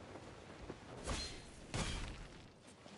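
A game character lands with a thud after gliding.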